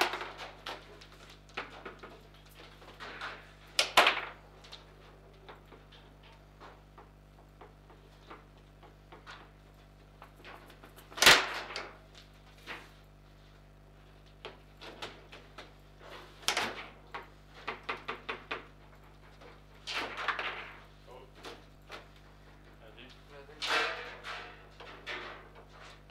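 A foosball clacks and knocks against plastic players and the table walls.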